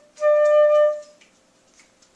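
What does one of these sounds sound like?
A flute plays a single held note, close by.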